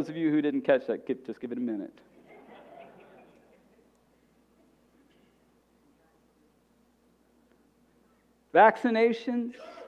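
A man speaks calmly into a microphone in a reverberant hall, pausing between phrases.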